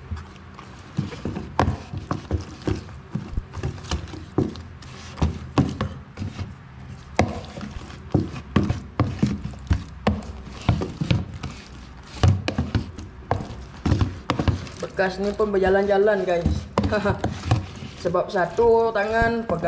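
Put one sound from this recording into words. A wooden spoon stirs and knocks against a plastic bowl.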